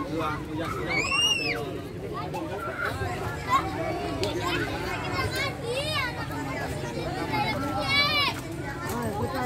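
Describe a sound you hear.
Young children squeal with shrill cries.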